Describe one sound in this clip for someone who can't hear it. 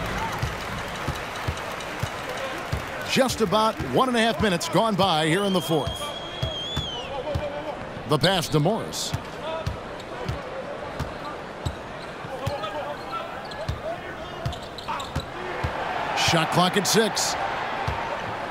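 A basketball bounces steadily on a hardwood floor.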